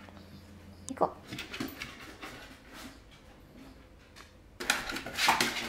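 A small dog's paws patter and thump up wooden stairs.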